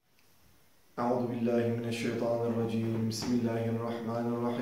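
A man speaks calmly and clearly close by.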